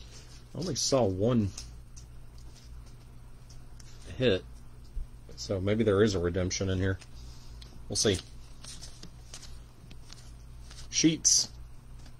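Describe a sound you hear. Trading cards rustle and slide as hands sort through them.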